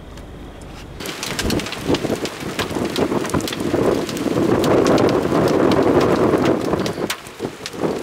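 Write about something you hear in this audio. Strong gusty wind roars and buffets outdoors.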